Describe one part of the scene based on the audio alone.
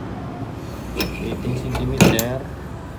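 A copper pipe knocks against a hard surface.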